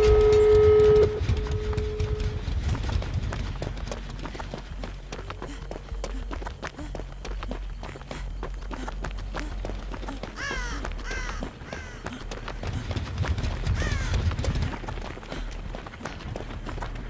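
Footsteps run quickly through rustling tall grass.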